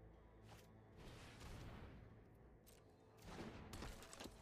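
A game sound effect whooshes as a card is played.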